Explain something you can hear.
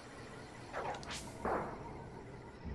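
Short video game sword swishes ring out.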